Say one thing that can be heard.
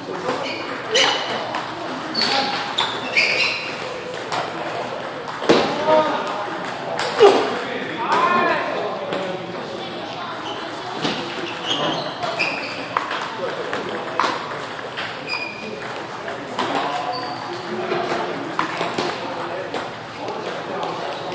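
Table tennis balls click sharply against paddles and the table in quick rallies.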